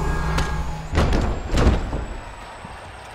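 A body crashes onto the mat.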